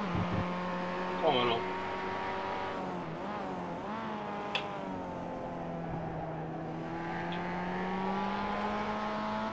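A racing car engine hums steadily, shifting pitch as the car speeds up and slows.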